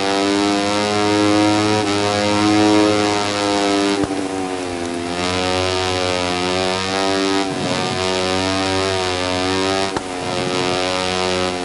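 A racing motorcycle engine whines at high revs, dropping in pitch as it slows for corners and rising again as it speeds up.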